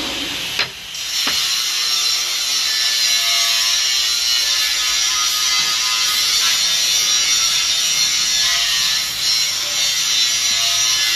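A metal lathe whirs and hisses steadily as it cuts steel.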